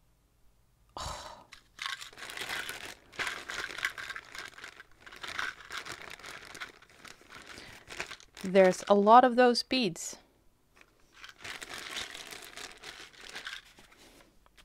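Plastic bags crinkle and rustle as they are handled close by.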